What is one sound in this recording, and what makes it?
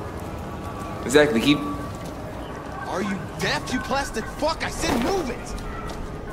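Men speak calmly, heard through a game's sound.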